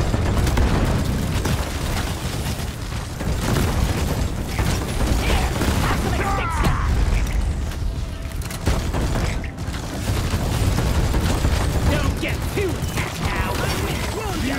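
Rapid gunfire rattles without a break.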